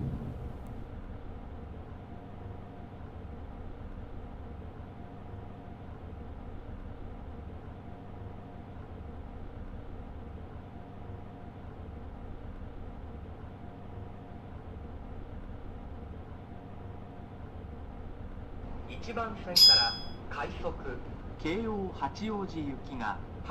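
An electric train hums steadily while it stands still.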